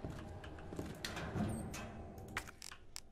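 A metal locker door clanks open.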